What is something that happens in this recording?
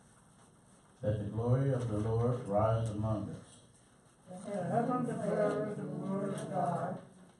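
A man speaks through a microphone in a room.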